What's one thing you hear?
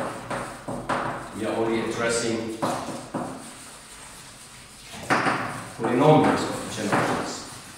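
A man speaks calmly, with a slight echo in the room.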